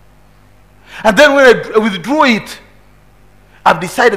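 A middle-aged man preaches forcefully into a microphone.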